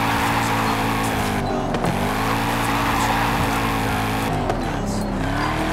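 A sports car engine roars steadily, its pitch dipping and rising with gear changes.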